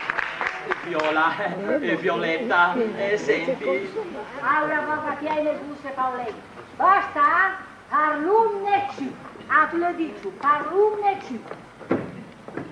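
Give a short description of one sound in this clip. An elderly woman speaks with animation on a stage.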